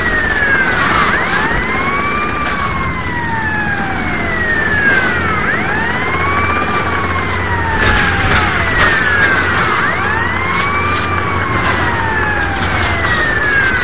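A police siren wails steadily, rising and falling.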